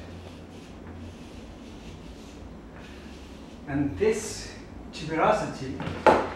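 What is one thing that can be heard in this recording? Chalk scratches and rubs against a wall in short strokes.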